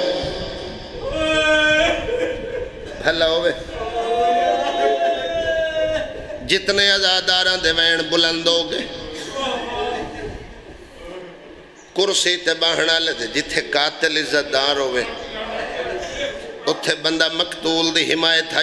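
A man speaks loudly and with passion through a microphone, his voice echoing through loudspeakers.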